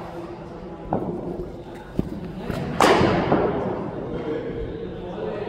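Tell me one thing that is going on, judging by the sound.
A ball thuds against netting.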